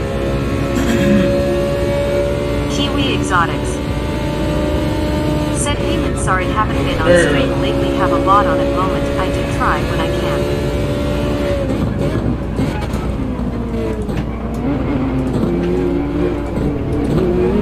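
A racing car engine drones at high revs, then drops in pitch as the car slows.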